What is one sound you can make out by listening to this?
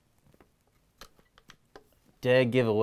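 Light clicks sound as a rifle is handled.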